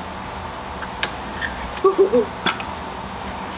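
A metal block press clicks and knocks against a plastic tray.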